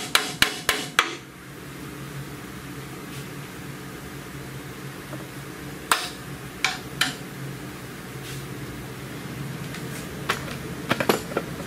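Metal parts clink and clank sharply.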